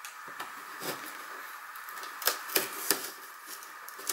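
Scissors snip through cardboard.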